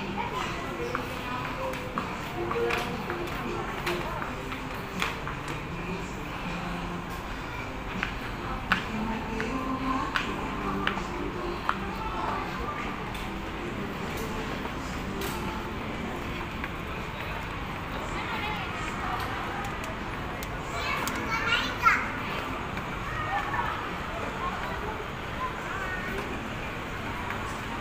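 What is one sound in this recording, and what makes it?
Footsteps tap on hard steps and wooden boards.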